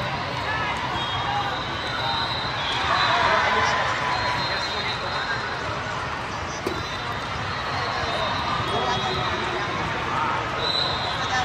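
A crowd of voices and shouts echoes through a large hall.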